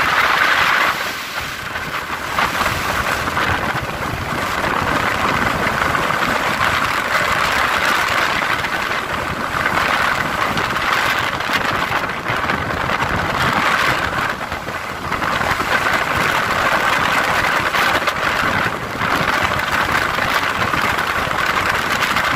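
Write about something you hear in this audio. A car engine hums and tyres roll steadily on the road, heard from inside the car.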